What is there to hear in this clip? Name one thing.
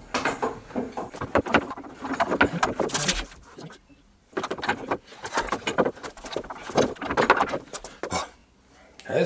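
Wooden boards knock and clatter against each other.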